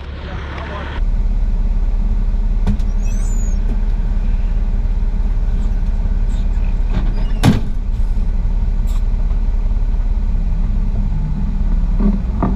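A vehicle engine drones steadily from inside the cab.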